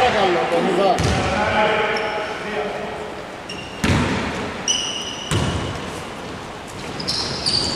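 A basketball bounces on a wooden floor with hollow thuds.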